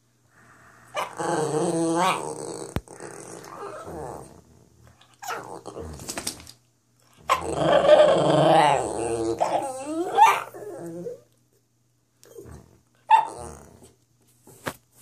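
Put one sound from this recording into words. A small dog whines and howls close by, rising and falling in pitch.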